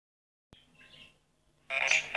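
A small toy robot whirs as it rolls across a hard floor.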